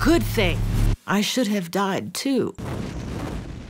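A middle-aged woman speaks quietly and with emotion, close by.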